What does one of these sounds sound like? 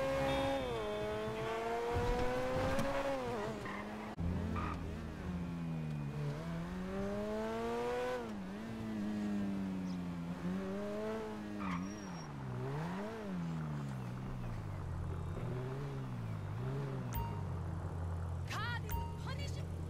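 A sports car engine revs up and down as the car speeds along.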